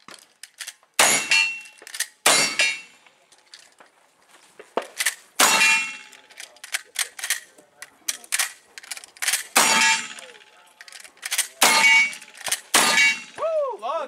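Rifle shots crack loudly outdoors, each followed by a short echo.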